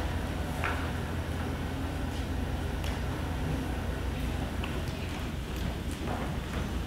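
A choir of young students sings together in a large echoing hall.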